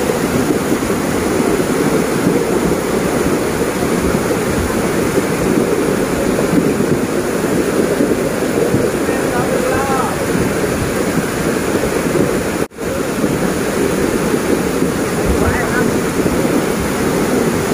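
Fast floodwater rushes and roars loudly.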